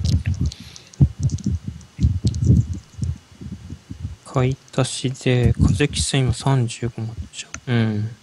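A game menu blips as a counter ticks up and down.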